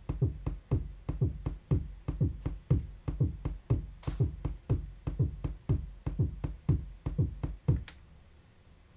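A drum machine plays a fast, pounding electronic beat.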